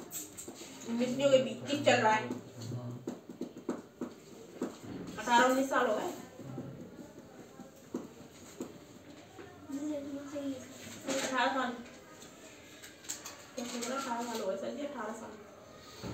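A young woman speaks calmly and close by, with pauses.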